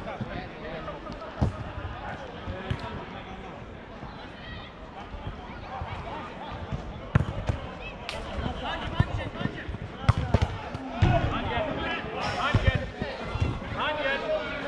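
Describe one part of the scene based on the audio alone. Men shout and call to each other across an outdoor pitch.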